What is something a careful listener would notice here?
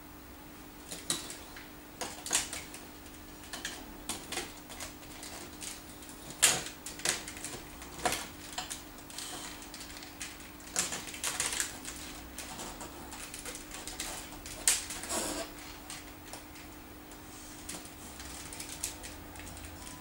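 Plastic building blocks click and clatter as they are snapped together and moved.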